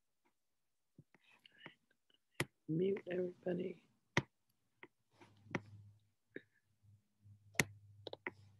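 A woman speaks calmly and close to a microphone, as if on an online call.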